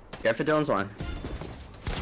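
Gunshots crack rapidly nearby.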